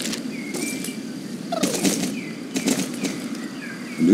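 A horse's hooves thud on grass.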